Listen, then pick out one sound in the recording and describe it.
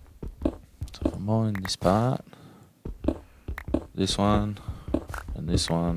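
Short crunching knocks sound as blocks are dug.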